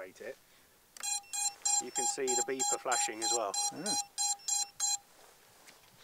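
A device beeps in a rapid, regular series.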